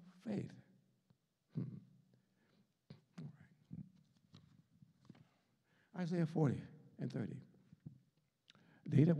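An elderly man preaches with animation through a microphone, in bursts with pauses.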